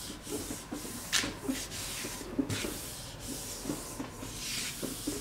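A hand rubs and smooths a sheet of paper.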